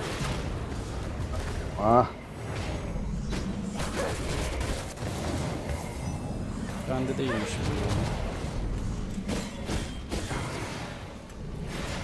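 Weapons clash and strike in combat.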